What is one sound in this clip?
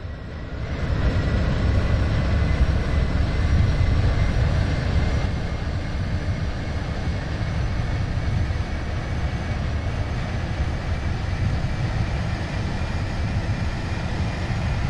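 A train engine hums and rumbles steadily as the train speeds along the track.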